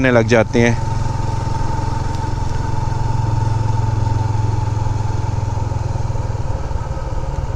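A motorcycle engine hums steadily up close as it rides along.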